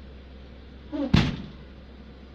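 A vehicle's rear door slams shut with a heavy thud.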